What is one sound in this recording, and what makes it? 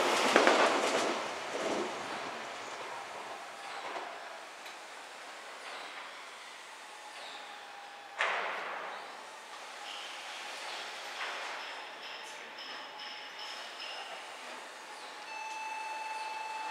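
A train rolls away into the distance, fading slowly.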